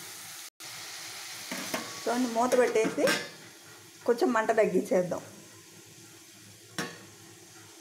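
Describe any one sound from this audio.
A metal lid clinks onto a pan.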